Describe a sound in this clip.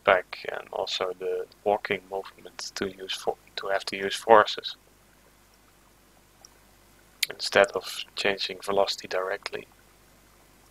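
A young man talks calmly and closely into a microphone.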